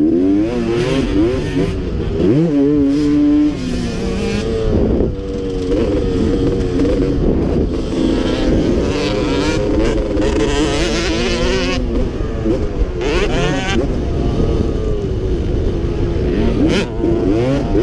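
Wind buffets a helmet microphone.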